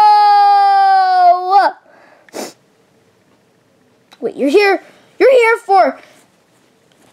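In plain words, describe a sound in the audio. Soft fur rustles as a hand squeezes a plush toy.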